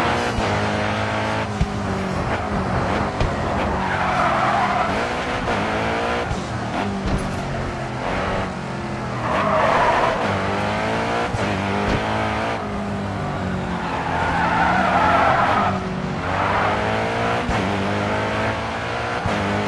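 A sports car engine roars and revs up and down through the gears.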